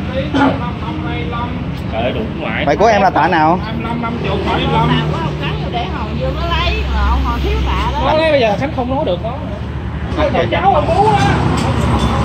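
Several men talk nearby with animation.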